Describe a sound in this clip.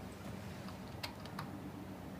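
Keys on a keyboard click.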